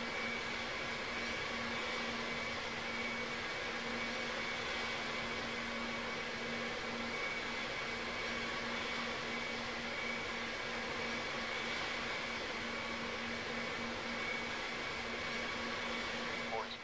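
A jet engine whines steadily at idle.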